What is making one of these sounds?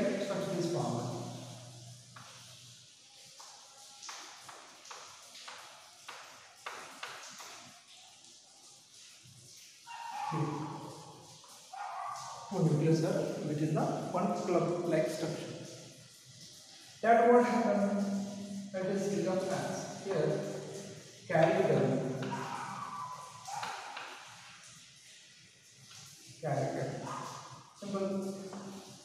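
A man lectures calmly and clearly, close by.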